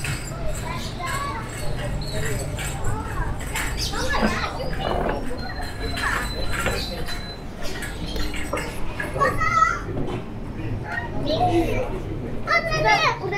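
Men and women chatter nearby in a busy outdoor street.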